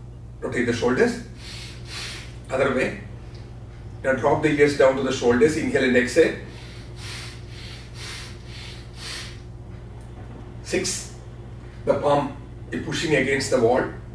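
A man speaks calmly and clearly in a room with a slight echo.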